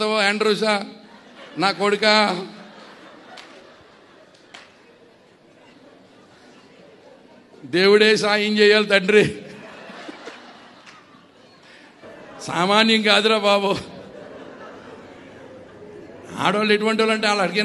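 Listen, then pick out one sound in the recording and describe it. An elderly man sings loudly through a microphone in short phrases with pauses between them.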